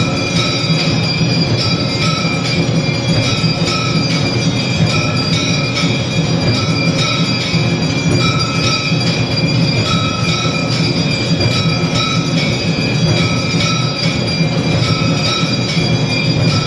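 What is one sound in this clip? A small hand bell rings steadily and rhythmically.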